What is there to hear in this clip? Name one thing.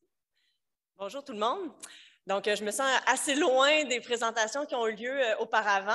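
A woman speaks calmly into a microphone in a large hall.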